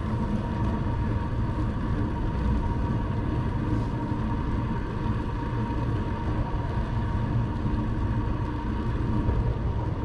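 Bicycle tyres hum along a paved road.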